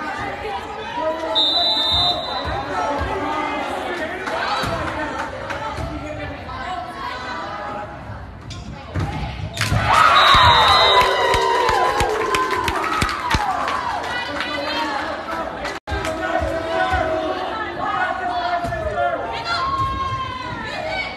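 A crowd chatters and murmurs throughout a large echoing gym.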